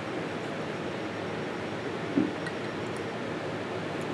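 A spoon scrapes against a jar.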